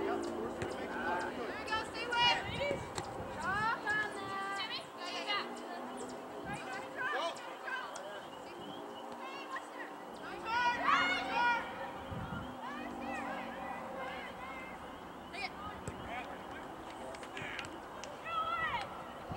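Young women shout and call out across an open field outdoors.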